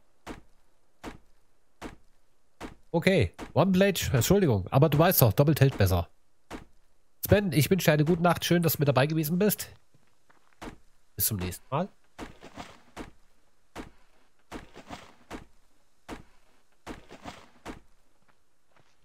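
An axe chops into a tree trunk with sharp, regular knocks.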